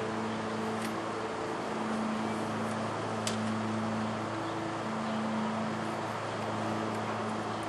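Metal picks scrape and click faintly inside a door lock.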